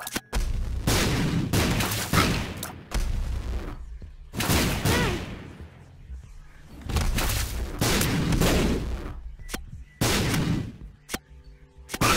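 Video game shots splat and burst in loud, noisy bursts.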